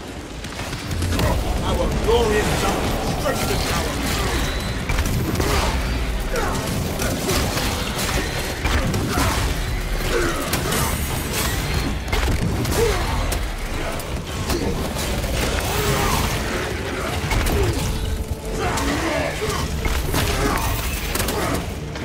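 Creatures screech and shriek in a swarm.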